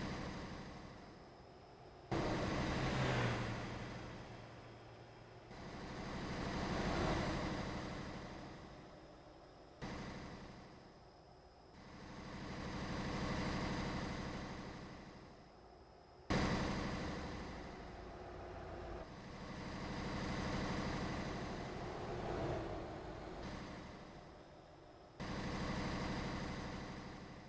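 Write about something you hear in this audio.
A heavy truck engine drones steadily, swelling louder as it passes close and fading as it moves away.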